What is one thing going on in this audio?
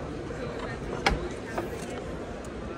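A hatch lid clicks open.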